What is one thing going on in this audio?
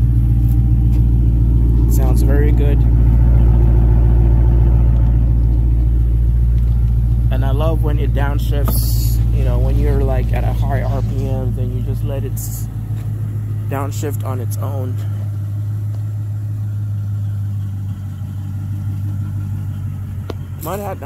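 A car engine idles with a deep, steady rumble close by.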